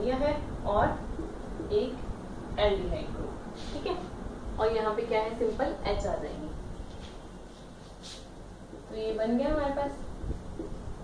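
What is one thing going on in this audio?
A young woman speaks calmly, explaining, close by.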